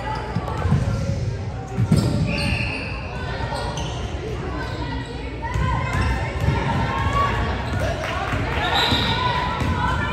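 A basketball thumps as it bounces on a wooden floor.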